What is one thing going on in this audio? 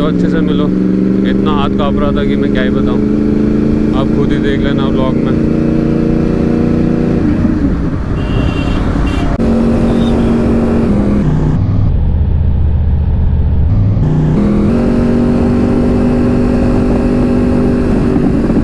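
A motorcycle engine drones steadily at speed, dropping low and then climbing again as gears change.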